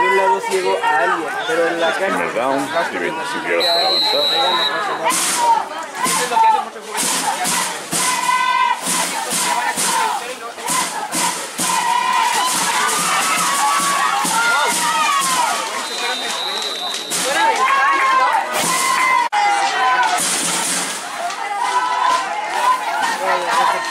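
A crowd of spectators close by chatters and cheers outdoors.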